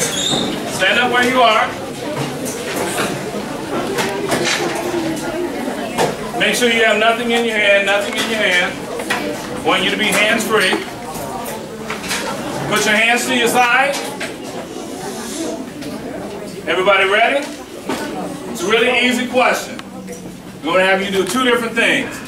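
A man speaks loudly and with animation in an echoing hall.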